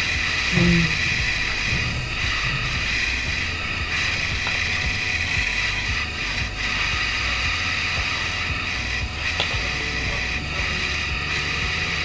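A fork scrapes and clinks against a plate.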